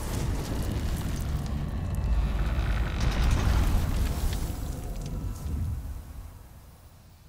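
A deep booming swell rises and slowly fades.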